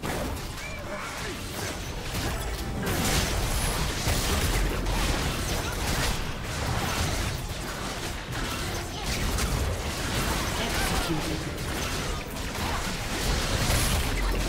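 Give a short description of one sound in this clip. Magic blasts and weapon clashes of a fierce fight ring out again and again.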